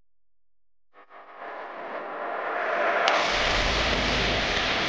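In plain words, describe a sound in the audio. A fiery blast roars loudly.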